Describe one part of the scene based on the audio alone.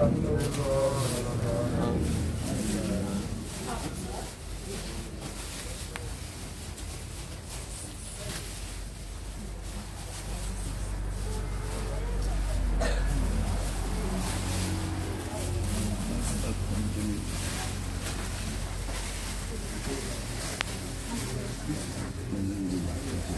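A crowd of men and women murmurs and talks nearby.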